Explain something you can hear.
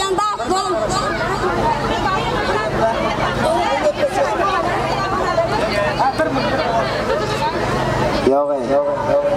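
Loud music with a thumping beat plays over loudspeakers.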